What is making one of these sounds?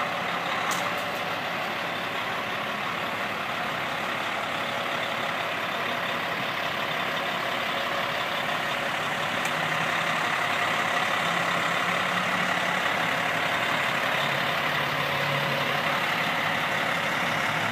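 A truck's diesel engine idles and rumbles as the truck slowly rolls forward.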